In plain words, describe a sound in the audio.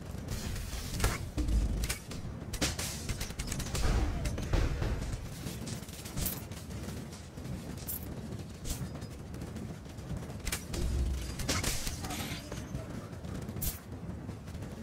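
Weapons hit and clash in a game fight.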